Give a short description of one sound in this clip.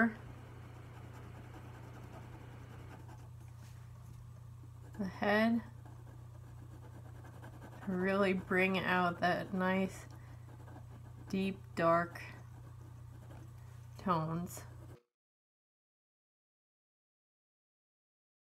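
A felt pen scratches softly across paper.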